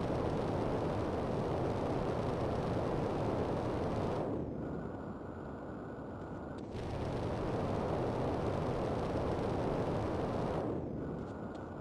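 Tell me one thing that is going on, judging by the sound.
A jetpack roars as its thrusters fire.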